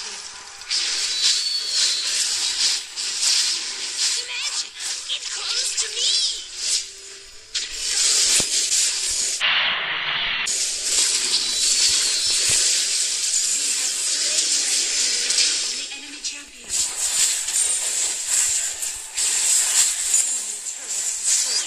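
Video game combat sound effects whoosh, clash and crackle rapidly.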